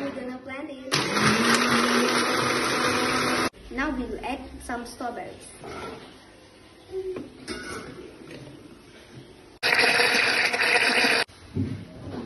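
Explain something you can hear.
A blender whirs loudly in short bursts.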